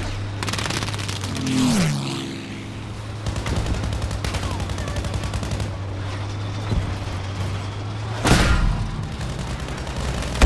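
A tank engine rumbles and its tracks clatter steadily.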